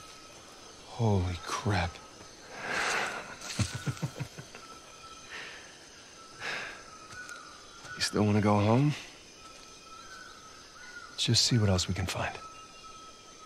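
A man speaks with surprise.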